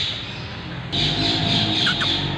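A cat meows nearby.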